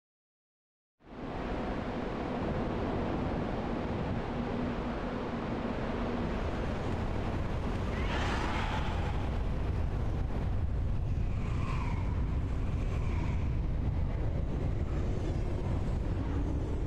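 Strong wind blows steadily outdoors.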